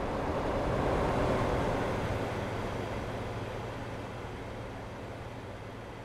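A bus engine rumbles steadily and slowly fades.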